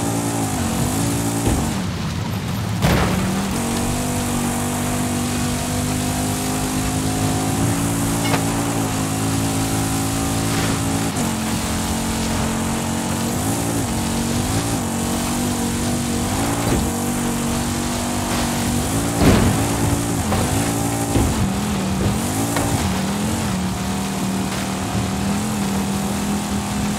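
A car engine roars steadily at high revs, rising and dipping as gears shift.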